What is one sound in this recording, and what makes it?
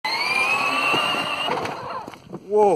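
A small electric motor whines and rises in pitch.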